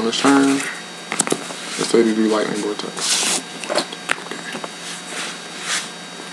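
Playing cards slap and slide on a soft mat.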